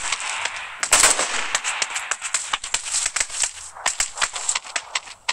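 Quick footsteps crunch over dirt and gravel.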